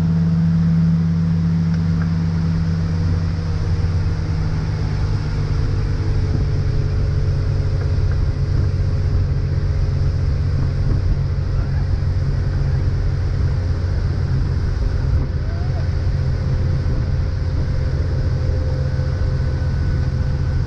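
Water rushes and churns in the boat's wake.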